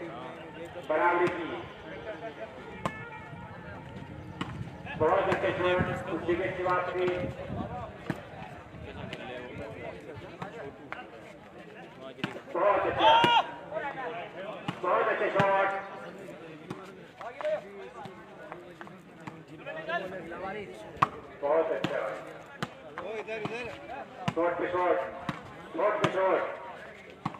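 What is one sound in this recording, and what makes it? A crowd of onlookers shouts and cheers outdoors.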